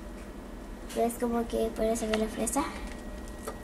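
A young girl speaks briefly nearby.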